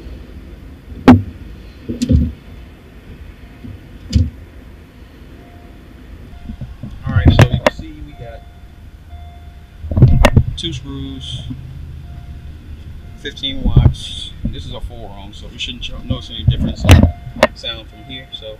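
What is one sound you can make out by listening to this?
Plastic parts click and knock as a man handles a car part.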